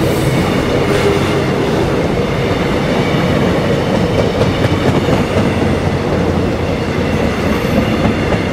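Train wheels clatter over rail joints.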